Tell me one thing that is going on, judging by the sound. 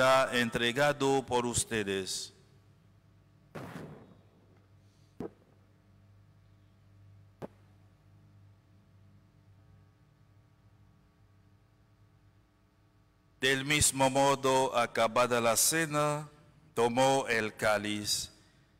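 A man speaks calmly into a microphone, in a large echoing hall.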